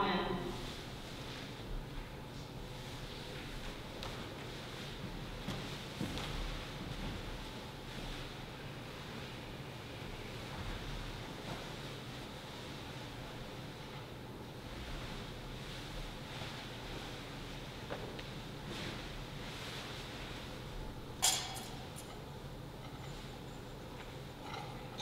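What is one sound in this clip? A man reads aloud quietly in an echoing hall.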